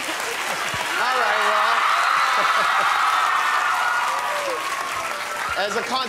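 A large crowd cheers and screams.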